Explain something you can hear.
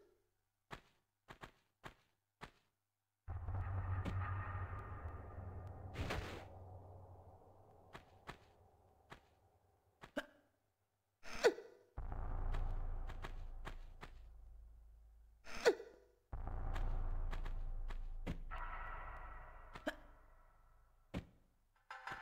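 Footsteps patter on stone.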